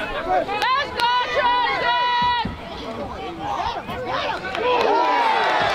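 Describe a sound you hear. A crowd of young people shout and cheer outdoors.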